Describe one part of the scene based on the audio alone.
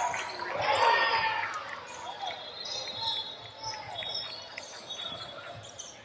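A referee blows a whistle in a large echoing gym.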